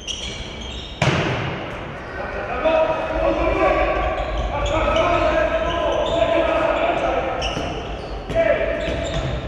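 A ball thuds and bounces on the floor.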